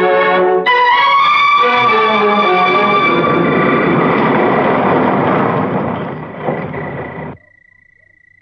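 A car engine rumbles as a car drives up and stops.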